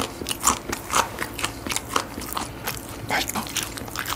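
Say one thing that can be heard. Paper and food packaging rustles as a hand picks up a piece of fried chicken.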